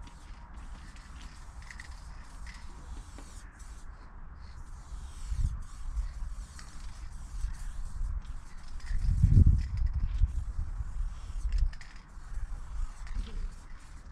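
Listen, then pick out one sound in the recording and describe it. A spray can hisses in steady bursts.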